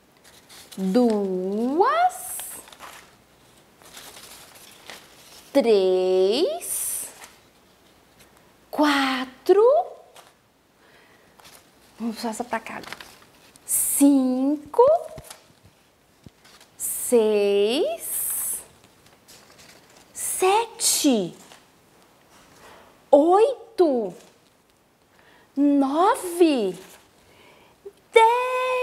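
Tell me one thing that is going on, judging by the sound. A woman speaks with animation close to a microphone, in short phrases with pauses.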